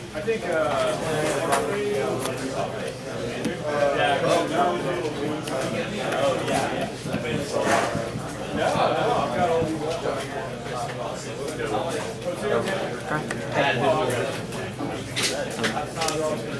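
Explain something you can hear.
Playing cards slide and tap softly on a table mat.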